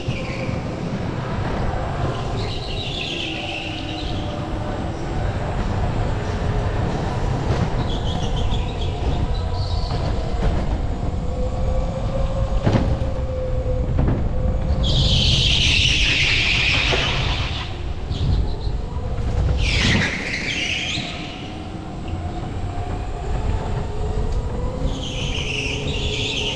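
A kart engine drones loudly, rising and falling in pitch as it speeds up and slows.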